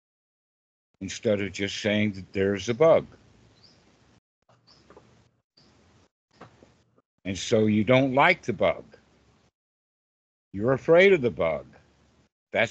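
An elderly man talks calmly over an online call, in bursts with pauses.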